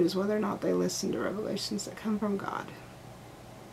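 A woman talks calmly close by.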